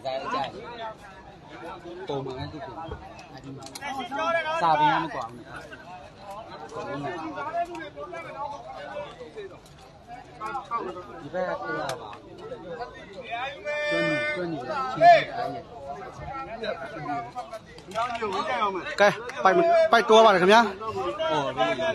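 A crowd of men and boys chatters and calls out outdoors.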